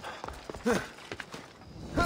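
Hands and feet scrape on stone while climbing.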